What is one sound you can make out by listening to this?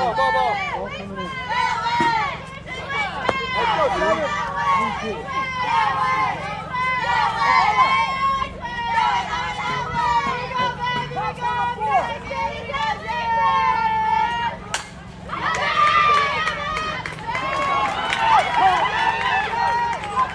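Young girls chant and cheer loudly nearby, outdoors.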